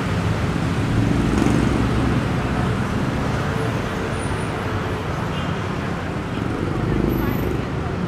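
Motorbikes buzz past in the street.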